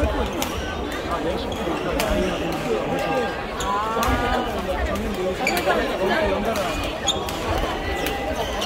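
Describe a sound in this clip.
Rackets hit shuttlecocks with sharp pops in a large echoing hall.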